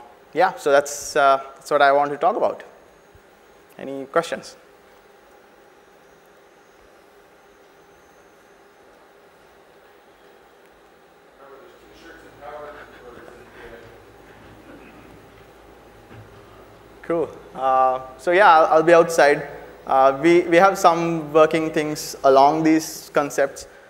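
A man speaks calmly into a microphone in a large hall.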